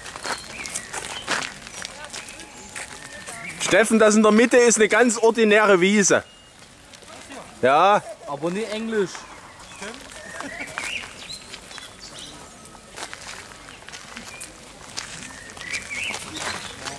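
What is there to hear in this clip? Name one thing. Footsteps scuff softly on paving stones.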